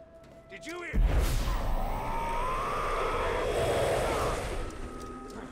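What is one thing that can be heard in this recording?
A magical energy blast crackles and roars.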